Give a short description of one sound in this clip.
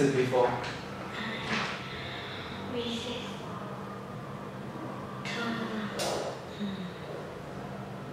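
A young girl answers softly through a microphone.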